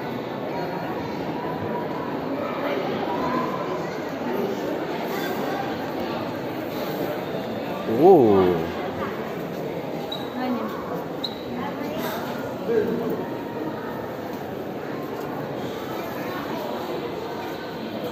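A crowd of visitors murmurs and chatters in a large echoing hall.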